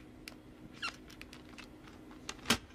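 A marker squeaks across a plastic disc.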